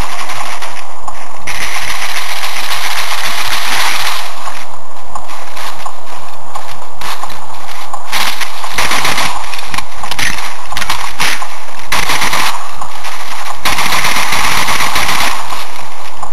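Rapid gunfire crackles loudly and harshly from a small device speaker.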